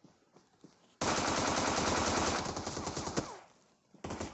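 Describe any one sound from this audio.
Rapid gunfire rattles loudly at close range.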